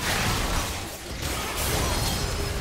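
A turret collapses with a crumbling blast.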